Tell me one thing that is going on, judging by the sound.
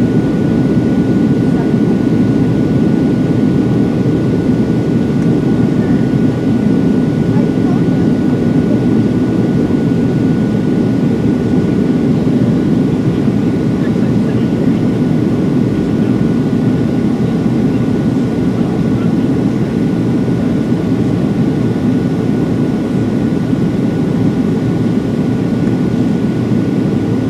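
An aircraft cabin hums with a steady, deep engine roar.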